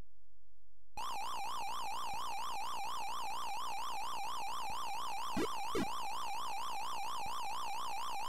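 Quick electronic blips chirp in a fast, even beat.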